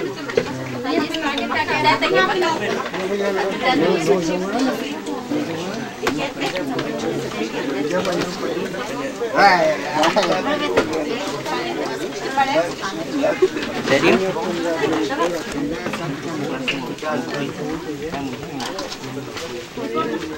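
Dishes and cutlery clink on a table.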